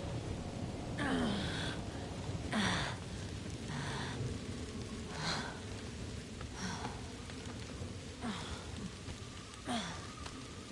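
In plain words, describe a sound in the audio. A man grunts and breathes heavily.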